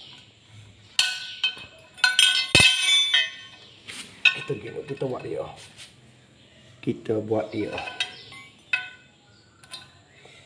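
A metal tool clicks and clinks against a metal wheel rim.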